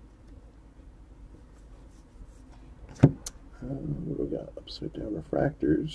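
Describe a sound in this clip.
Trading cards rustle and slide as they are shuffled.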